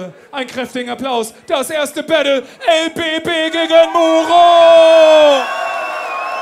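A young man raps forcefully through a microphone over loudspeakers.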